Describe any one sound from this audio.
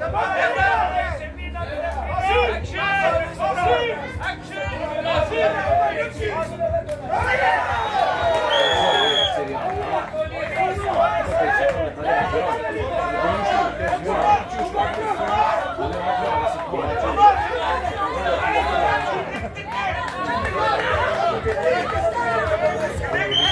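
An outdoor crowd of spectators shouts and cheers.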